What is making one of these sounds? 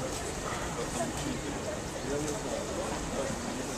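Pigeons flutter their wings.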